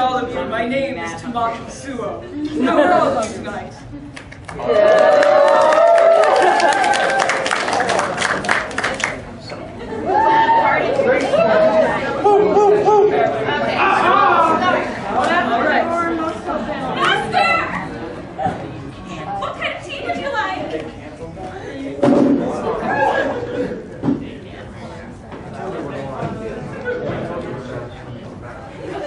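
A young performer speaks with animation on a stage, heard from the audience in a large room.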